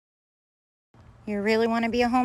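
A woman speaks close by in a high, sing-song voice.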